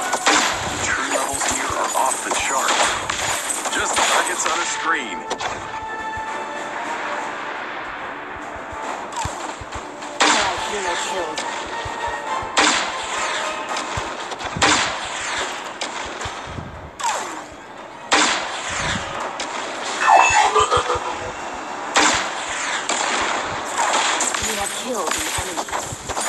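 Game weapons fire and blast in rapid bursts.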